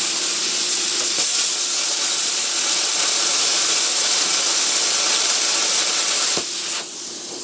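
A plasma cutter hisses loudly as it cuts through metal.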